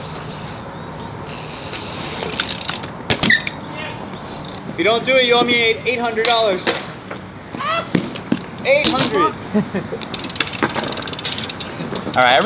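Bike tyres roll over concrete outdoors.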